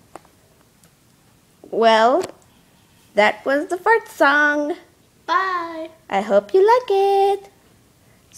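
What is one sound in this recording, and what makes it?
Small plastic toys tap softly on a wooden table.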